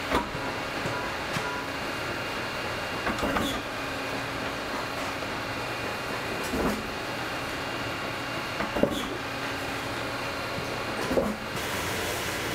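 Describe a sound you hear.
A press thumps down with heavy knocks.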